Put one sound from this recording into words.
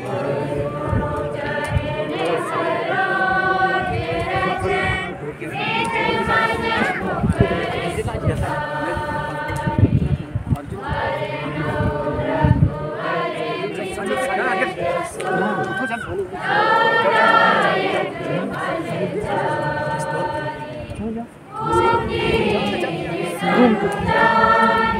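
A woman sings over loudspeakers.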